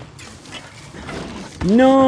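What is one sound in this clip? Bicycle tyres rumble over wooden planks.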